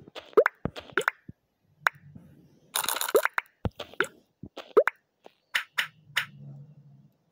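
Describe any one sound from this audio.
Game pieces click and pop with short chiming tones as they stack and clear.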